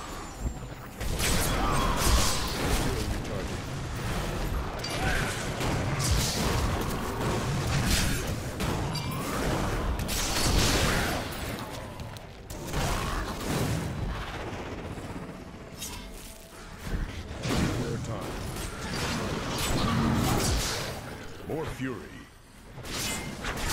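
Weapon blows and spell blasts crash in a video game battle.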